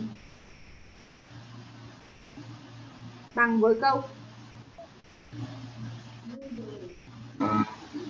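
A young woman speaks calmly through a microphone, explaining slowly.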